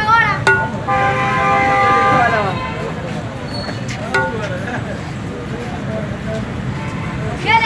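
A metal spoon scrapes and clinks against a large metal pot.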